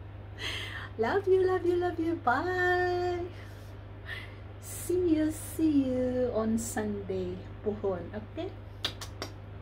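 A middle-aged woman speaks cheerfully and with animation, close by.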